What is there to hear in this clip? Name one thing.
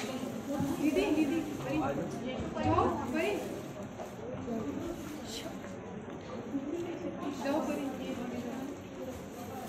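Several people talk and murmur nearby.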